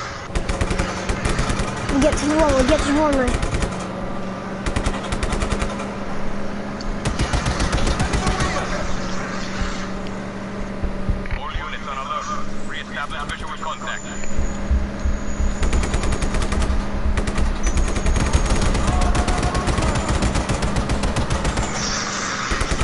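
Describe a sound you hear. An armoured car's engine roars as it speeds along.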